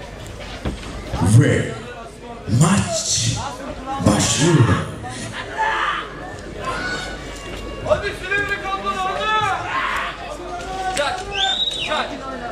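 A man announces with animation through a loudspeaker in a large echoing hall.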